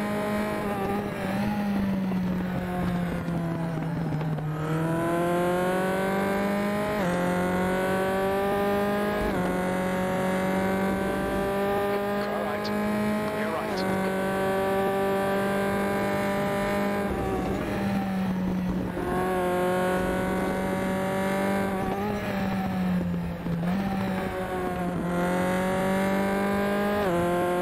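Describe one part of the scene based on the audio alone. A racing car engine screams loudly, rising in pitch as it speeds up and dropping sharply at each gear change and braking.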